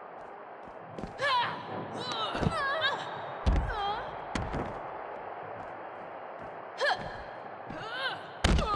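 Heavy blows thud.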